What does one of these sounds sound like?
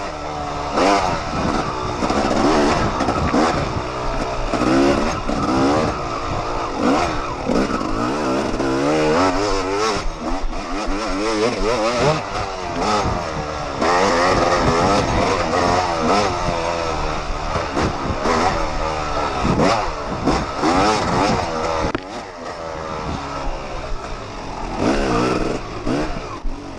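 Tyres churn through mud and dirt.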